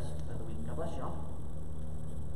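A man speaks briefly into a microphone in a large echoing hall.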